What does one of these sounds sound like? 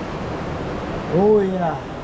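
A man exclaims excitedly close by.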